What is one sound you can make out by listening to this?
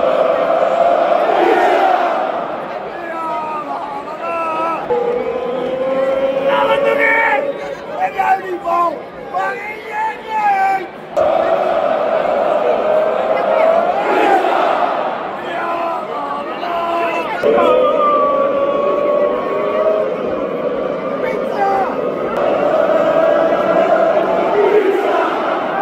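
A large football crowd chants and sings in unison in a large open stadium.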